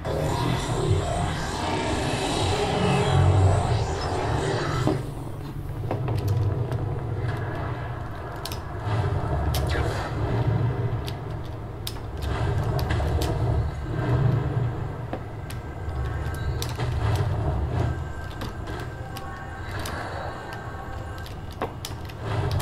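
Deep rumbling game sounds play from nearby loudspeakers.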